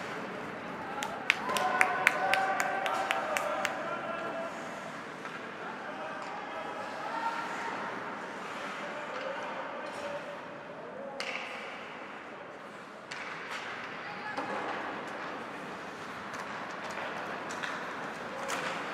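A crowd of spectators cheers and shouts in an echoing arena.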